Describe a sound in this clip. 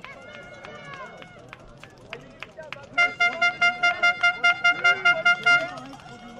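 A crowd of spectators cheers and calls out in the distance, outdoors.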